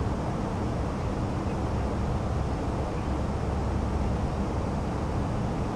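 Jet engines drone in a low, steady roar.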